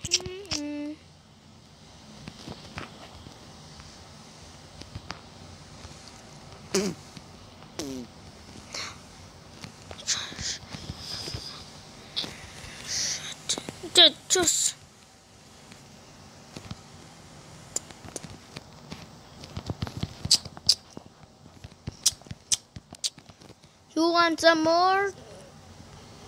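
A young boy speaks close to the microphone in short bursts.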